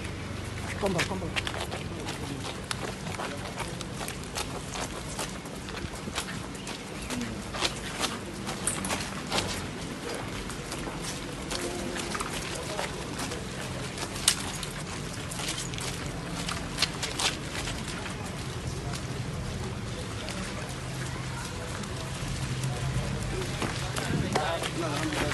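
Footsteps splash on wet ground.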